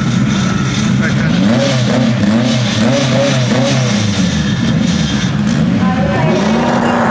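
A car engine revs loudly in short bursts.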